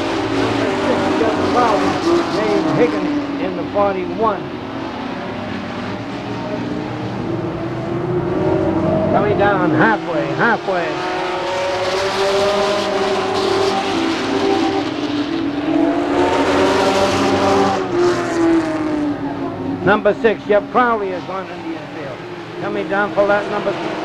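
Race car engines roar and rev loudly as the cars speed past.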